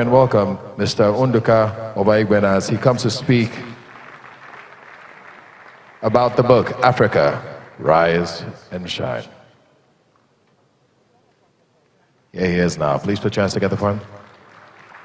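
A man announces through a loudspeaker in a large echoing hall.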